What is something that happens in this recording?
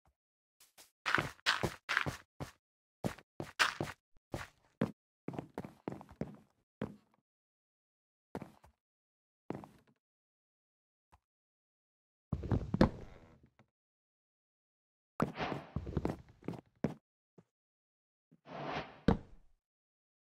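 Blocks thud softly into place, one after another.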